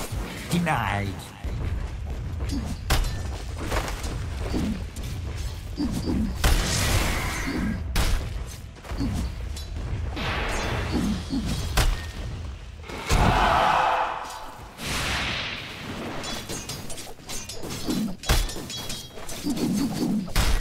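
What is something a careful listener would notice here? Spell blasts and weapon hits crack and whoosh in quick bursts.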